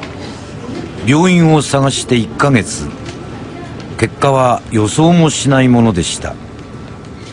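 A young boy speaks quietly and close by.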